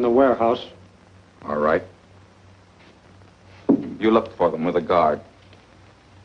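An older man speaks calmly nearby.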